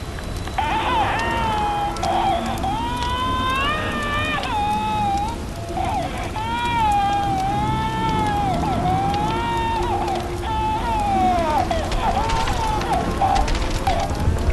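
A phonograph plays a warbling, wavering melody.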